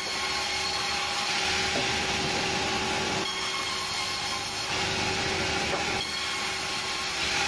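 A sawmill blade whines loudly as it cuts through logs.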